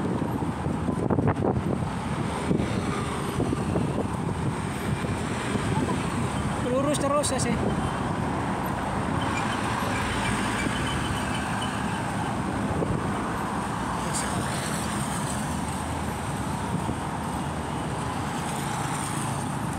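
A motorcycle engine idles close by.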